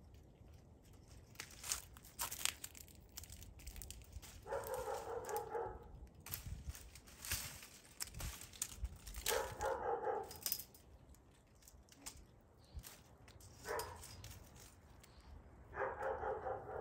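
Dry vines rustle, snap and crackle as they are pulled.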